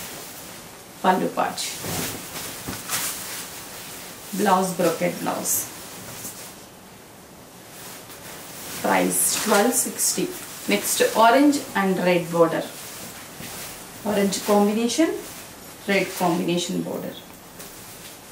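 A young woman speaks clearly and at an even pace into a nearby microphone.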